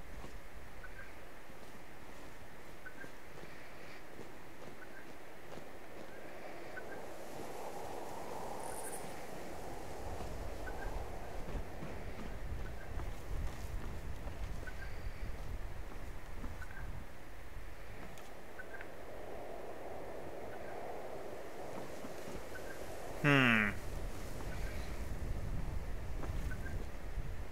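Footsteps tread steadily on wooden boards.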